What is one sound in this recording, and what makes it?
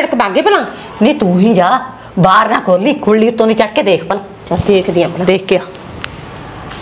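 An elderly woman talks with animation nearby.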